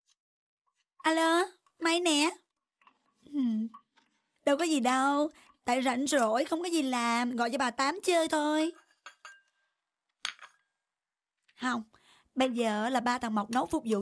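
A young woman talks with animation on a phone.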